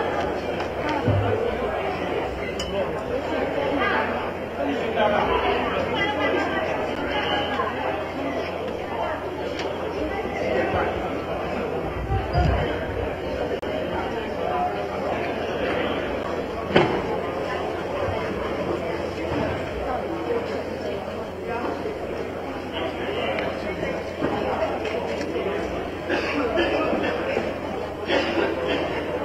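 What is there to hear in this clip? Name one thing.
Furniture knocks and scrapes as people shove it.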